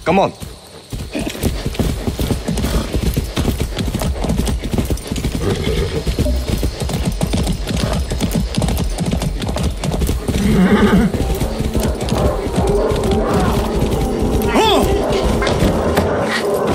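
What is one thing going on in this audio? A horse gallops, its hooves thudding quickly on the ground.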